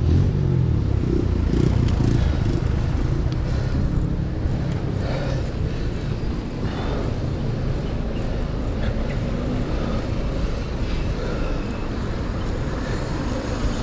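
Wind rumbles steadily past a moving bicycle outdoors.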